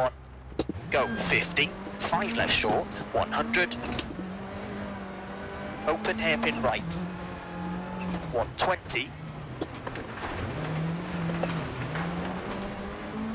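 A rally car engine hums and revs, shifting gears.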